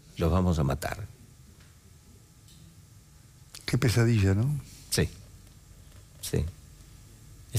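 An older man speaks calmly into a close microphone, in short phrases with pauses.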